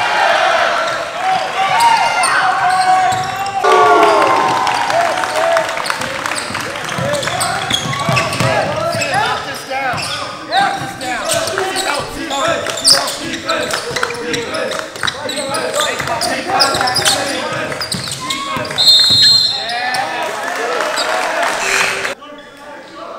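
A crowd cheers and shouts loudly in an echoing gym.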